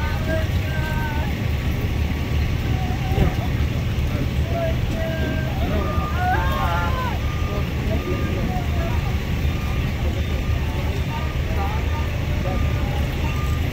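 A vehicle engine idles steadily nearby.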